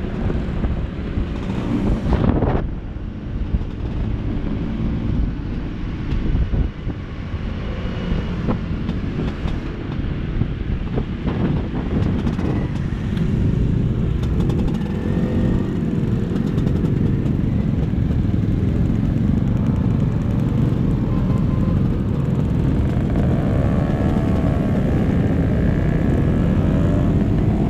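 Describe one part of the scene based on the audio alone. Wind buffets a microphone loudly.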